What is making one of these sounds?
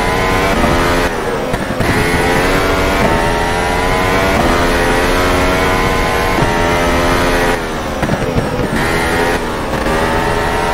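A racing car engine drops in pitch as the car slows for corners.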